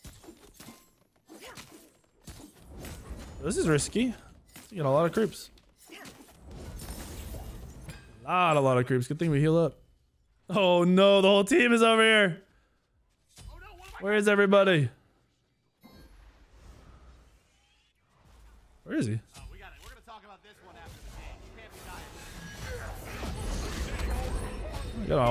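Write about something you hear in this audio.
Game spells and hits crackle and clash.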